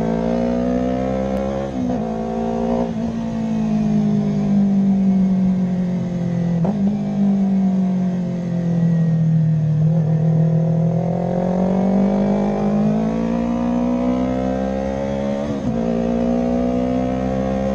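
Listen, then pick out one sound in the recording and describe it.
Wind rushes past the moving motorcycle.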